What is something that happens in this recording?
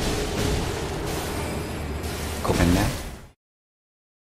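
A loud fight crashes and rumbles.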